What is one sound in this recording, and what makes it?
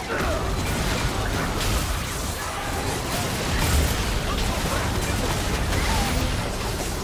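Game combat effects crackle and boom.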